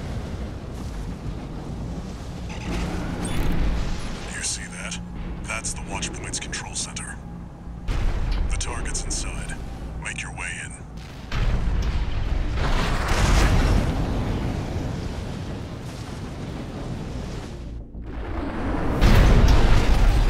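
A jet thruster roars loudly.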